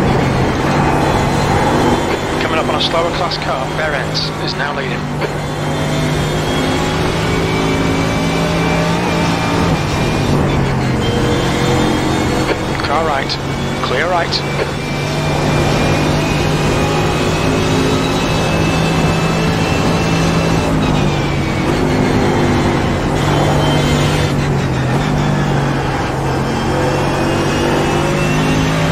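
A racing car engine roars at high revs, shifting gears up and down.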